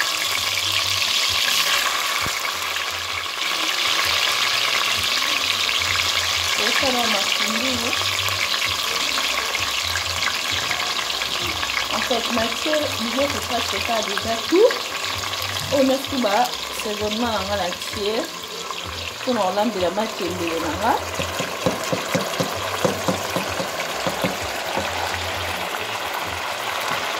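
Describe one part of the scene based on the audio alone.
Water bubbles and simmers steadily in a pot.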